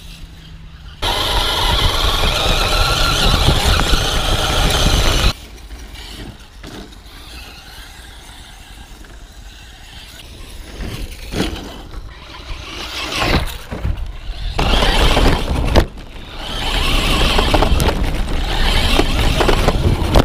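Tyres crunch and rumble over gravel and dirt.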